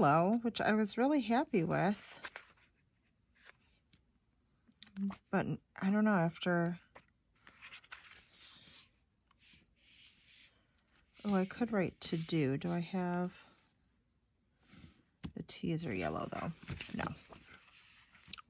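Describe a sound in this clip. Sheets of stiff paper rustle as pages are turned over.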